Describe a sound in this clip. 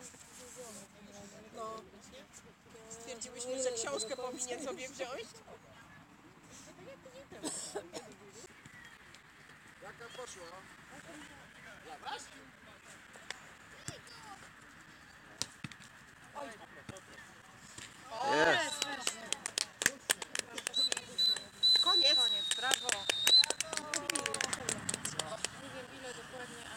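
Children shout and call out across an open playing field.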